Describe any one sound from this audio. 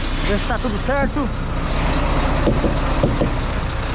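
A mallet knocks dully against a tyre.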